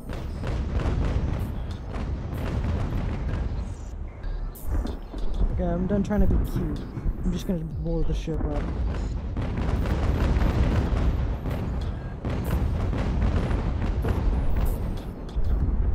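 Cannons boom repeatedly in deep, rumbling blasts.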